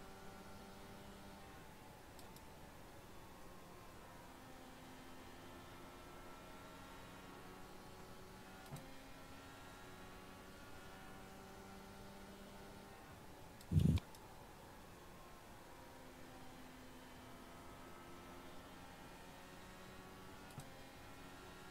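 A racing car engine hums steadily, its pitch rising and falling with each gear change.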